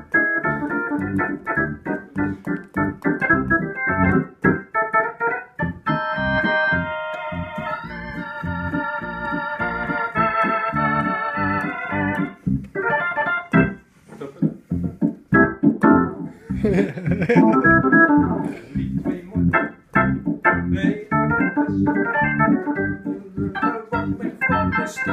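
An organ plays a lively tune with rhythmic chords.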